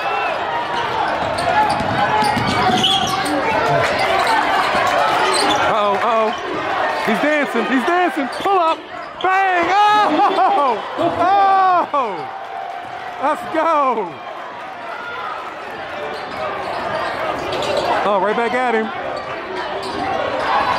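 A crowd murmurs and cheers in a large echoing gym.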